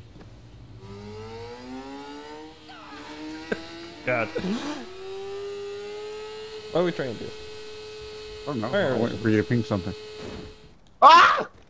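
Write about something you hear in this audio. A motorcycle engine revs and rises in pitch as it speeds up.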